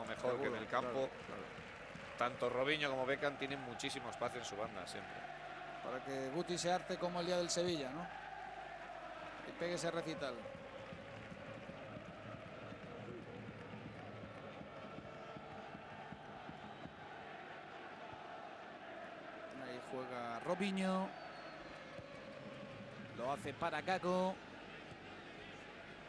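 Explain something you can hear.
A large stadium crowd murmurs and chants steadily outdoors.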